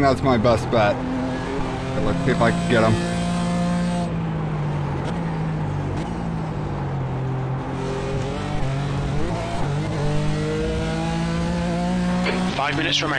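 A racing car engine roars steadily, rising and falling in pitch as it shifts gears.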